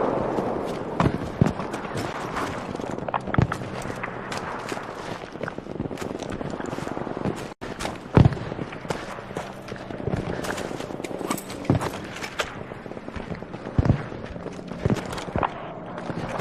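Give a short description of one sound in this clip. Gunshots crack and boom nearby and in the distance.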